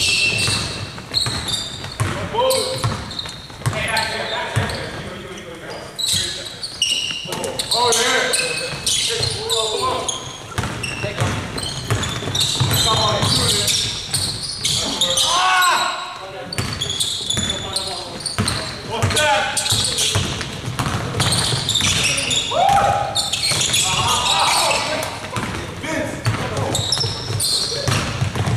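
A basketball bounces repeatedly on the floor in a large echoing gym.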